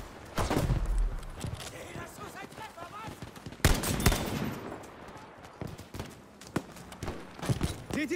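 A rifle bolt clicks and rounds clatter as a rifle is reloaded.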